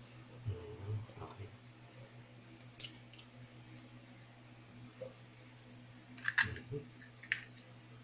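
Small wet fish rustle and squelch in a bowl as a hand stirs them.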